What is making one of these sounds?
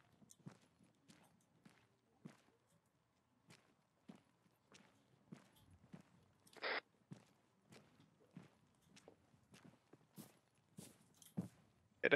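Footsteps tread steadily on a hard road.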